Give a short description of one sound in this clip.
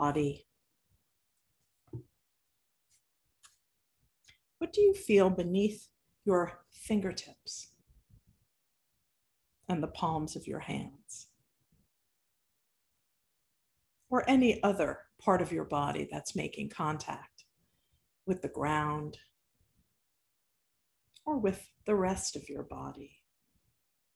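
A middle-aged woman speaks calmly and close to a microphone, in short bursts with pauses.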